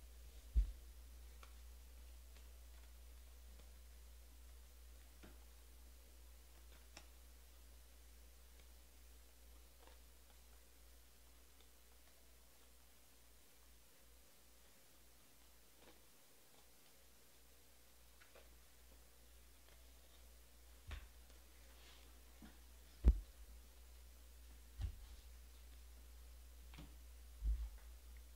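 A hand sets things down on a table with dull knocks.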